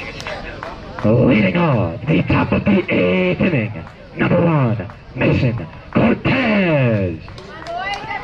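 A young man chants loudly close by.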